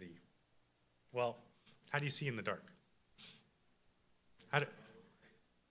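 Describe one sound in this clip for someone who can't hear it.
A man speaks calmly into a microphone in a reverberant room.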